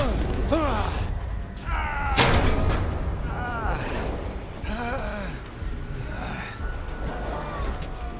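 Hands clank on a metal grate.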